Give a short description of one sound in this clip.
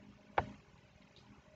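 A short electronic click sounds.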